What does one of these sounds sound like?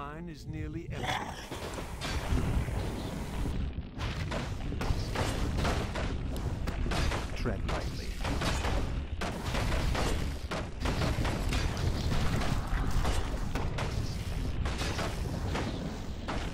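Weapons clash and magic blasts burst in a busy battle.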